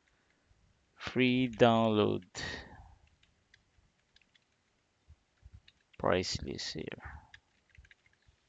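A man speaks briefly into a close microphone, with pauses.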